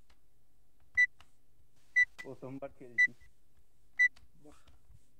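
Short, even countdown beeps sound once a second.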